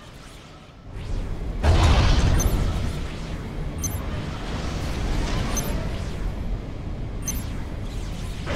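Explosions and gunfire rumble in a battle.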